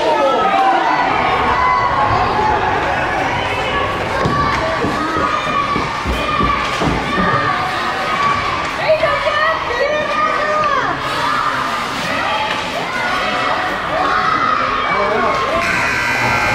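Many young children shout and call out in a large echoing hall.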